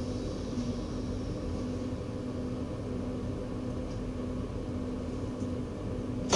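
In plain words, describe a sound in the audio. A train engine hums steadily from inside the cab.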